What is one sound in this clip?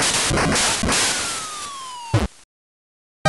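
A falling electronic whistle glides down.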